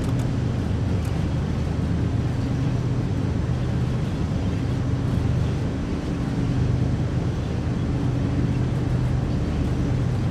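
Train wheels clatter and rumble over rails.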